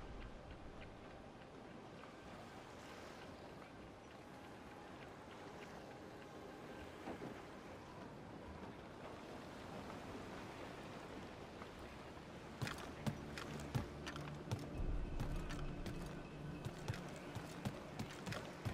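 Waves wash against a wooden ship's hull.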